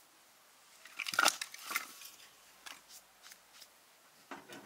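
Wooden logs knock and clatter as they are stacked.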